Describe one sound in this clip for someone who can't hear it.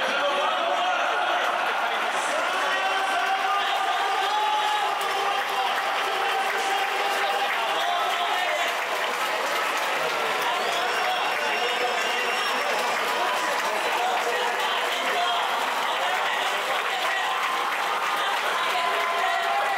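A large crowd cheers and roars throughout a big stadium.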